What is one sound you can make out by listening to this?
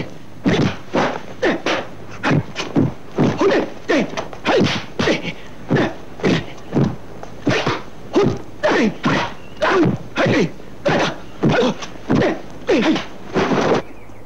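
Punches and blocks land with quick, sharp smacks.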